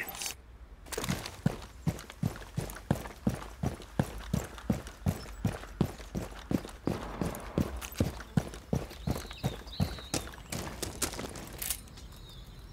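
Footsteps thud quickly and evenly on hard ground.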